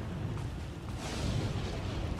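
Lightning crackles and zaps.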